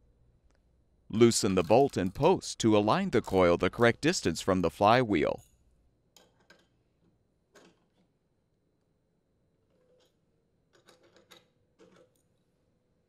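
A ratchet socket wrench clicks as it turns a bolt.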